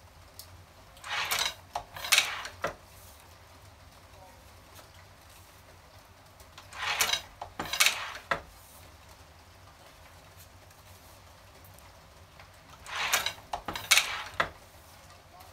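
A hand-cranked printing press clatters and thumps as its arm is pulled through a stroke.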